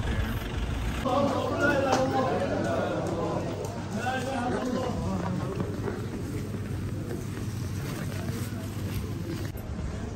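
A crowd of men talks and murmurs nearby.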